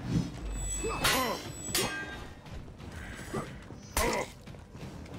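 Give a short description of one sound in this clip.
Swords clash with sharp metallic clangs.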